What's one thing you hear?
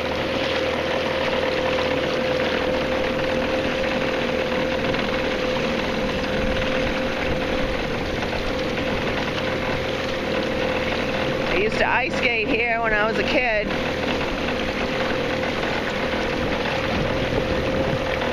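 Wind blows steadily outdoors across open water.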